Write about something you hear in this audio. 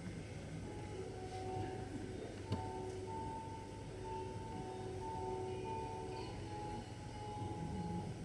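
Soft music plays over loudspeakers.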